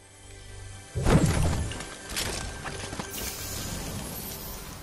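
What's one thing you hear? A treasure chest bursts open with a bright shimmering jingle.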